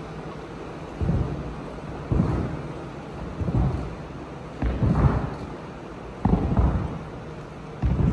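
A wooden seesaw board bangs heavily as acrobats land on it, again and again, in a large echoing hall.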